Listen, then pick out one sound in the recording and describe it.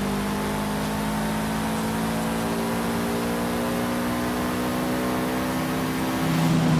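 A racing car engine roars steadily at high revs, slowly rising in pitch as the car speeds up.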